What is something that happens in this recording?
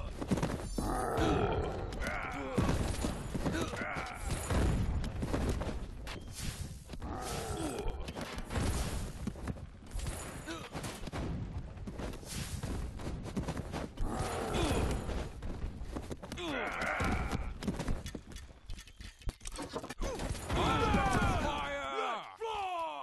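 Weapons clash and strike repeatedly in a noisy battle.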